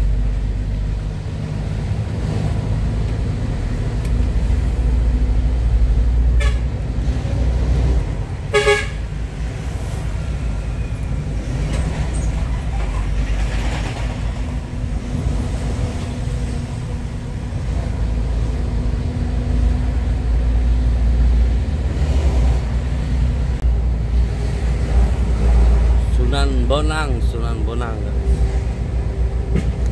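A truck's diesel engine rumbles steadily while driving.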